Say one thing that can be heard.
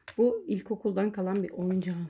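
Plastic sliding puzzle tiles click as they are pushed.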